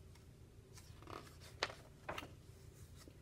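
A book page rustles as it turns.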